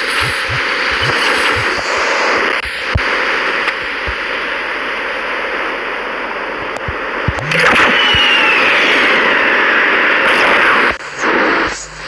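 A swirling vortex roars with a loud rushing wind.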